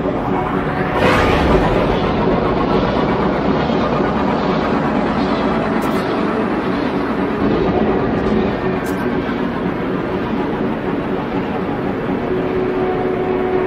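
A spaceship surges forward with a rushing whoosh.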